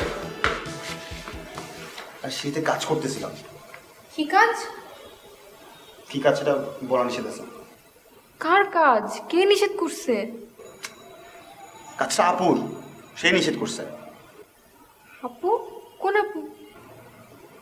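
A young woman speaks upset and pleading, close by.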